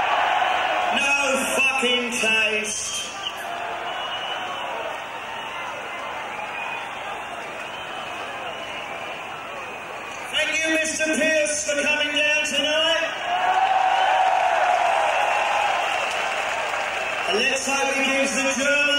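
A man shouts into a microphone, heard through loud speakers.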